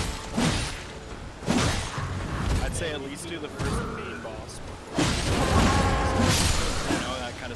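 Swords clash and strike.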